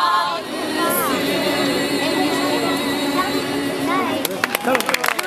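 Young women sing together, close by.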